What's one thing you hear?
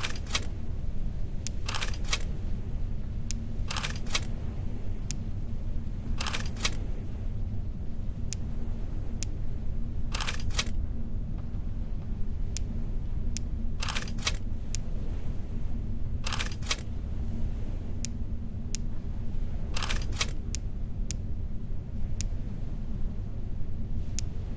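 Gems click into place, again and again.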